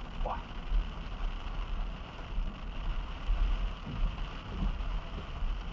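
A car passes close by on a wet road with a hiss of spray.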